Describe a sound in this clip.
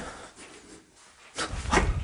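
A hand rustles a quilted blanket up close.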